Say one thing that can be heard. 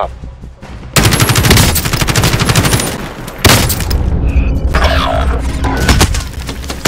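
Rapid gunfire rattles loudly and close by.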